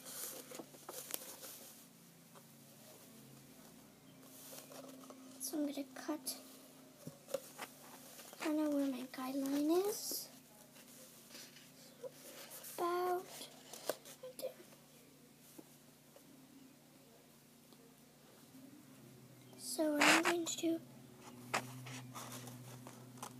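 Small objects rustle and tap as a young girl handles them.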